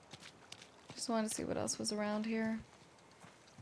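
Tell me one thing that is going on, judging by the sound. A young woman speaks briefly and expressively into a close microphone.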